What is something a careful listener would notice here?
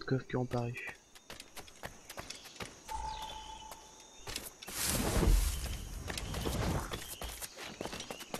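Footsteps run over stone and earth.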